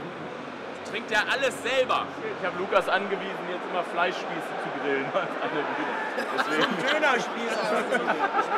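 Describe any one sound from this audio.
Several men chat and laugh nearby.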